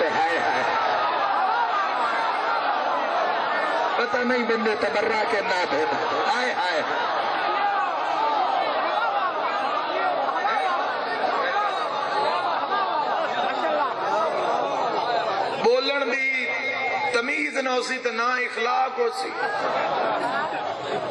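A man recites passionately through a microphone in a reverberant hall.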